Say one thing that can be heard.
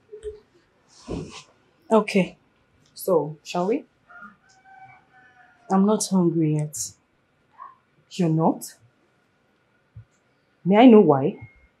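A woman speaks in a firm, annoyed tone nearby.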